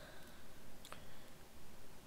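A small plastic clip clicks.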